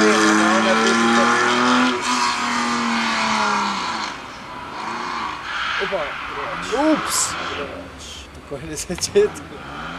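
A car engine revs loudly and then fades.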